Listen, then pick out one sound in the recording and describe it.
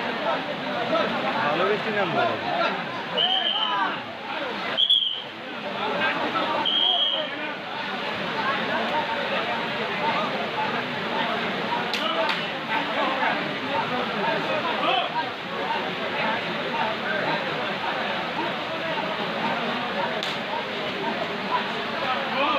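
Young men shout to each other close by.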